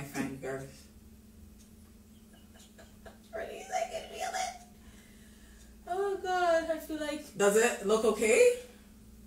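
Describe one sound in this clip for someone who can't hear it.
A woman talks animatedly close to the microphone, in short bursts.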